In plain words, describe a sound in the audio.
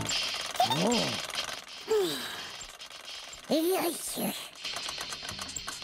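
A xylophone is struck, playing quick notes.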